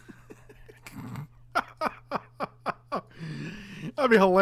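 A man laughs heartily into a close microphone.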